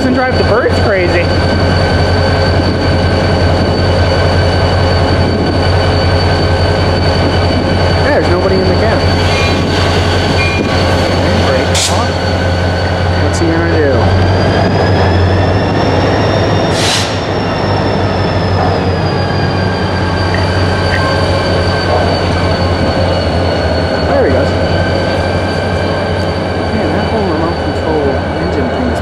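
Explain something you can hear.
A diesel locomotive engine idles with a loud, steady low rumble.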